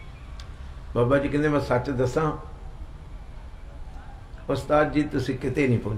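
A middle-aged man speaks with emphasis into a microphone, in bursts with pauses.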